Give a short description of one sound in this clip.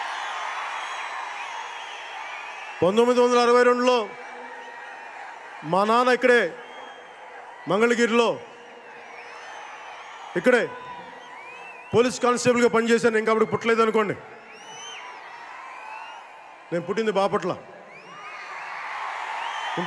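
A large outdoor crowd cheers and whistles.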